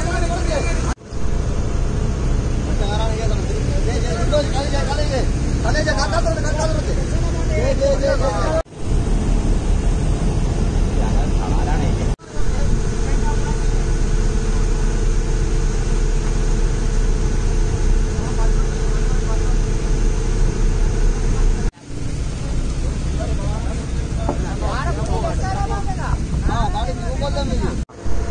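Men talk excitedly nearby.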